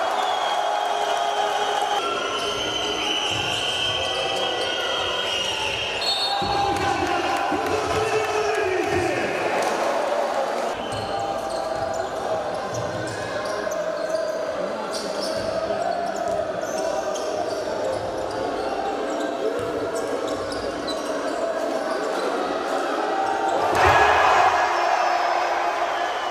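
A large crowd chants and cheers in an echoing hall.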